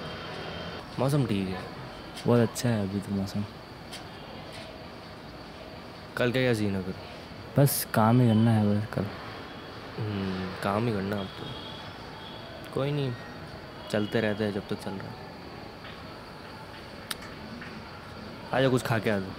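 Young men talk calmly with each other nearby.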